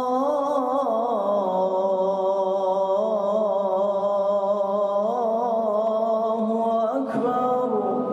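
A man chants a long melodic call through a loudspeaker in a large echoing hall.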